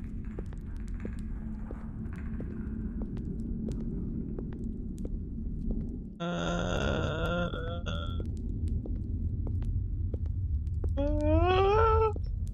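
A torch flame crackles and roars steadily.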